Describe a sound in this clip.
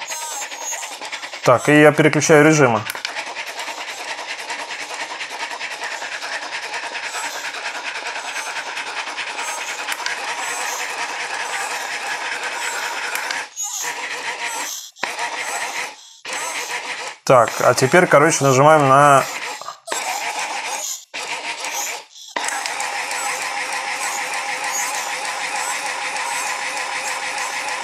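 A small portable speaker plays music close by.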